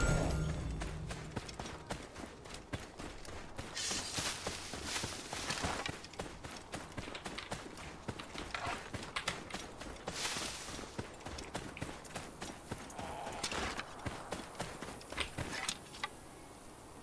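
Footsteps run over dry ground and grass.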